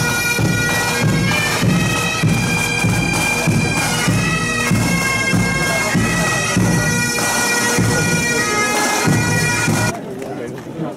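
A marching band plays pipes loudly.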